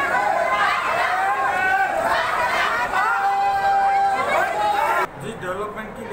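A crowd of men shout and argue loudly in an echoing hall.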